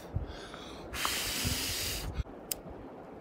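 A man blows hard on a small fire.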